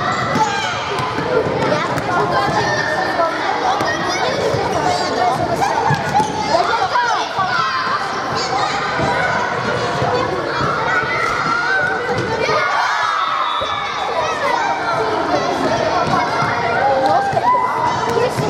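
Children shout and cheer loudly in a large echoing hall.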